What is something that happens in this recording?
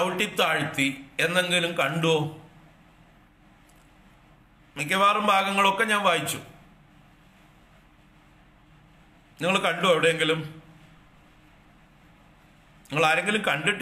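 An older man speaks slowly and calmly into a close microphone, in short phrases with long pauses.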